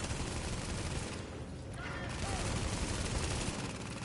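An explosion booms and crackles with fire.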